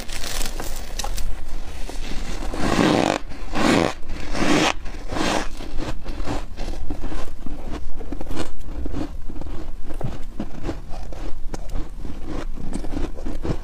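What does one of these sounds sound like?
A young woman crunches and chews ice close to the microphone.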